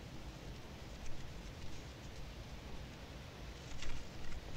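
A paper record sleeve rustles.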